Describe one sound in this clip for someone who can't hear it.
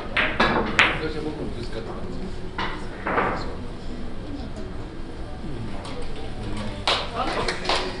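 Billiard balls knock together and bounce off the cushions.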